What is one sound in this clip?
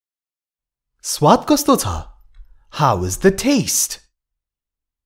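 A man speaks slowly and clearly into a microphone, with a pause between two phrases.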